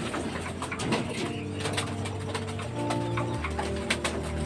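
Pigeons coo softly.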